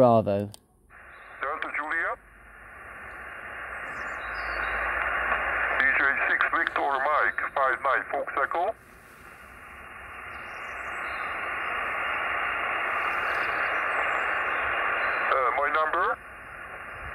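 Static hisses from a radio loudspeaker.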